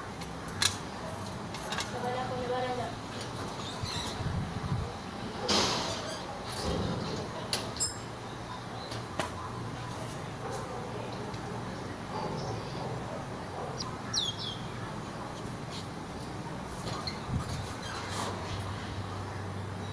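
A metal locker door rattles and clicks.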